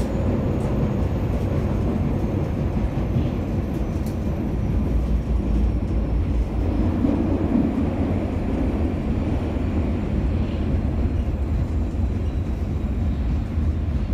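A subway train rumbles and rattles steadily along the tracks.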